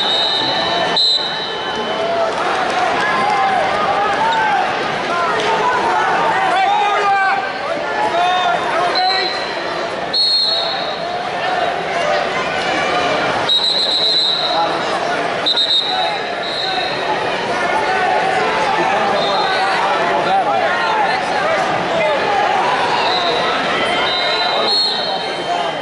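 A large crowd chatters and cheers, echoing through a big hall.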